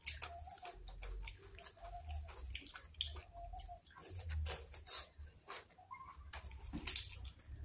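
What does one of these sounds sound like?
A young woman chews food close to a microphone with wet, smacking sounds.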